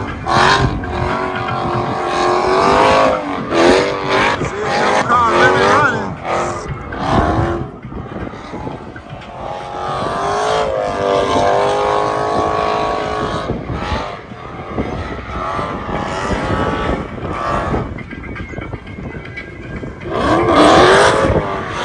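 A car engine revs hard and wails up and down in the distance.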